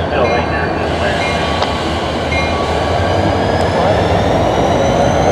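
Steel wheels squeal faintly on the rails.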